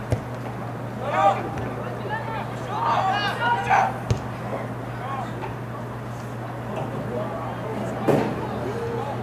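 Players shout to each other across an open field at a distance.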